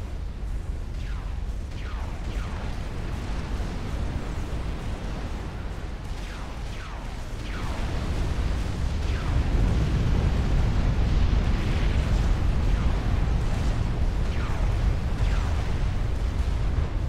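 Laser beams zap with falling whines.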